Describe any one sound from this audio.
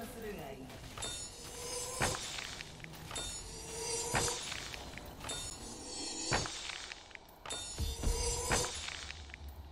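A shimmering magical chime swells and ends in a deep boom, over and over.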